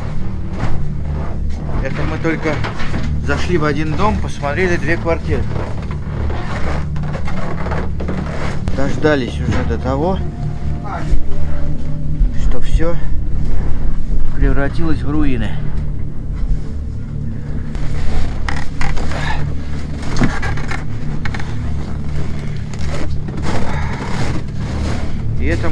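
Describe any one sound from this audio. Wind rumbles against the microphone.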